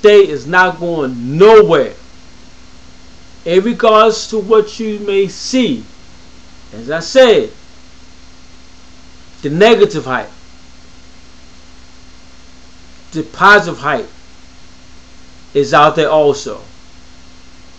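A man speaks close to a microphone in short, expressive bursts with pauses between them.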